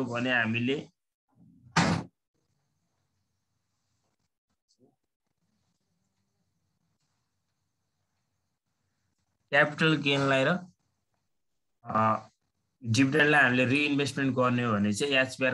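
A man speaks calmly and explains, close to a microphone, with long pauses.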